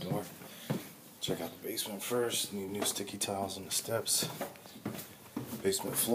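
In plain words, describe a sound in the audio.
Footsteps thud down wooden stairs.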